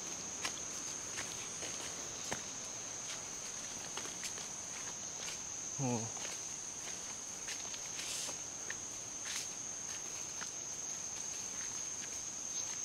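Footsteps crunch on a dirt path and dry leaves.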